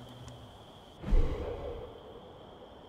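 A metal box lid thuds open.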